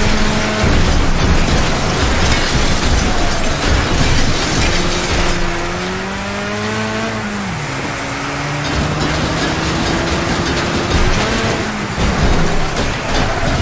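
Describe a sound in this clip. Metal crunches as cars crash into each other.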